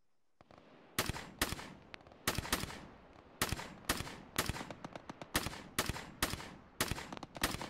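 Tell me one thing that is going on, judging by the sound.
A rifle fires single shots in quick bursts, each shot echoing loudly.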